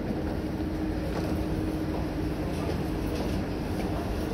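Footsteps tap on a hard floor as people step off a train.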